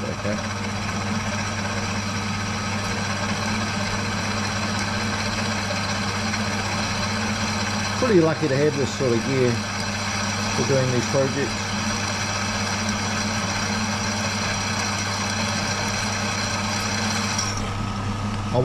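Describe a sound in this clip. A drill bit grinds and whines through metal, then stops.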